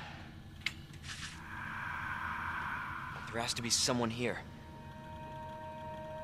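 An old computer beeps and hums as it starts up.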